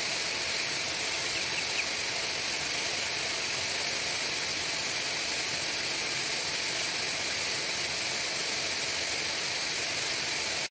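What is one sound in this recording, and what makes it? Many chicks cheep in a dense, constant chorus.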